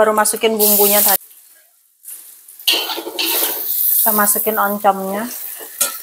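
Chopped food tumbles from a bowl into a wok.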